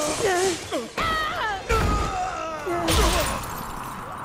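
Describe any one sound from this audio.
Heavy thuds sound as a body falls and hits the ground.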